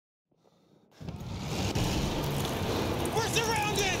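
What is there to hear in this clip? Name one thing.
Fire crackles among burning debris.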